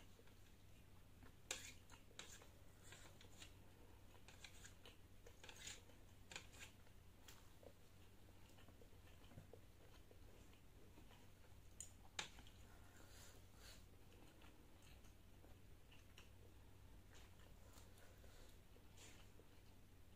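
A young woman chews food with soft, wet smacking sounds close to a microphone.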